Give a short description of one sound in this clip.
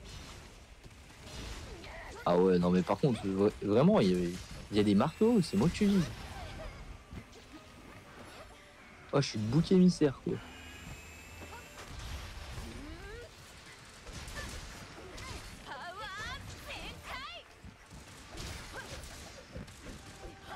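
Sword blades slash and clang against a large beast.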